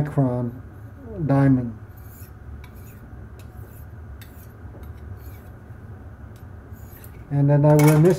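A metal blade scrapes back and forth across a sharpening file.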